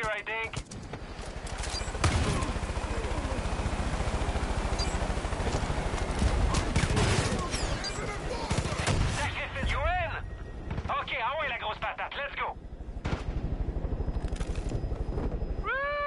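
A helicopter's rotor thumps loudly and steadily.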